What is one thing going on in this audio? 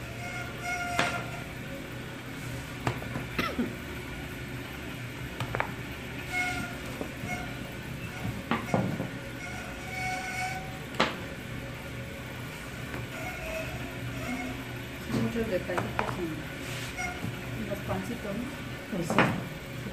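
A rolling pin and a scraper knock sharply on a wooden board now and then.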